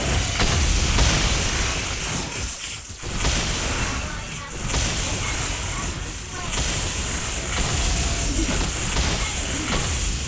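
Magic blasts and clashing effects from a fantasy battle game crackle and boom.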